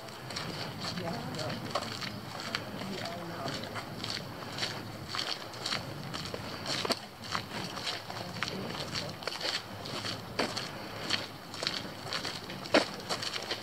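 A breeze rustles through leaves outdoors.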